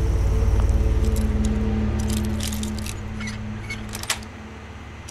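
A lock pick scrapes and clicks inside a lock.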